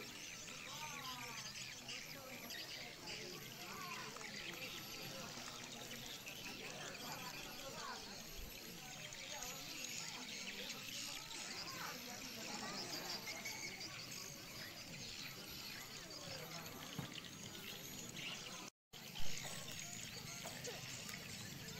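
A crowd of children chatters outdoors.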